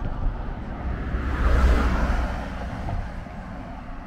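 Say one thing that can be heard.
A van drives past.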